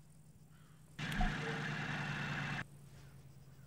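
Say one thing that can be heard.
A tank engine rumbles loudly.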